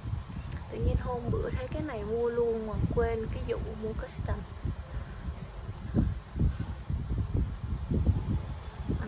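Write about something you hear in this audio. A makeup sponge pats softly against skin.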